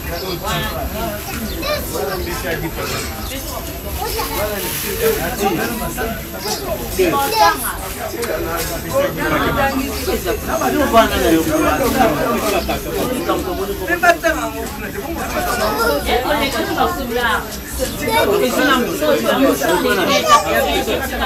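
A group of men and women talk over one another close by.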